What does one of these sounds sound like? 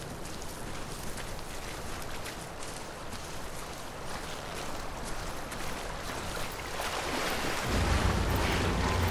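A river flows steadily nearby.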